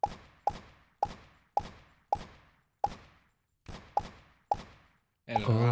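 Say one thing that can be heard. A silenced pistol fires shots in quick succession.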